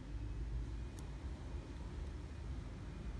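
Metal tweezers tick lightly against a plastic case.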